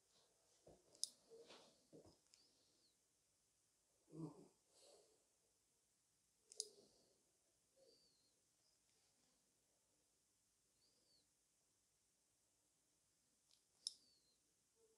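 A small metal tool taps and scrapes lightly against a hard nail.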